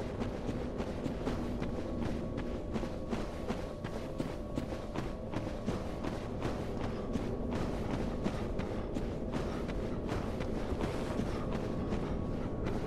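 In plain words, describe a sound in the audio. Armoured footsteps crunch steadily over rough stone ground.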